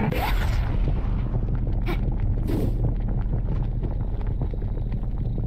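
Lava bubbles and rumbles steadily.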